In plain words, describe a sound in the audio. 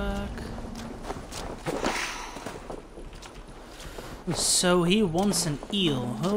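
Footsteps crunch on soft dirt.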